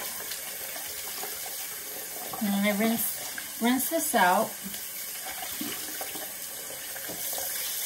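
A wet cloth is rubbed and squeezed under running water.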